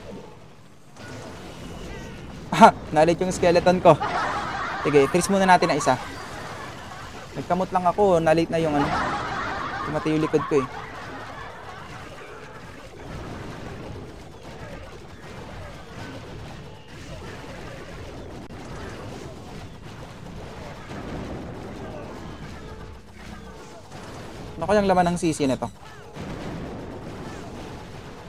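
Cartoonish battle sounds and small explosions play from a mobile game.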